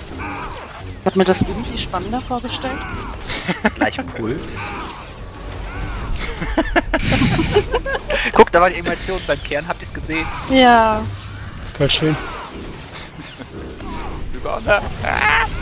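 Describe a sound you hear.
Energy weapons fire and zap in rapid bursts during a fight.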